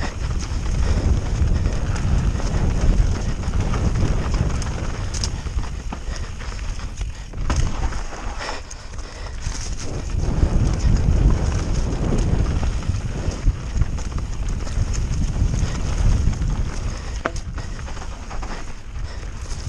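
A mountain bike frame rattles and clicks over bumps.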